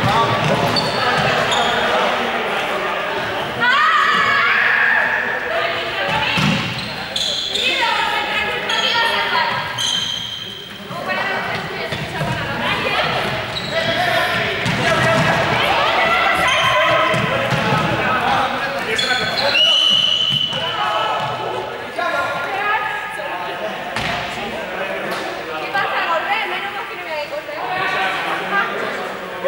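Young people shout and call out while playing in a large echoing hall.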